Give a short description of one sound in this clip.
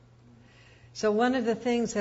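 A woman speaks calmly into a nearby microphone.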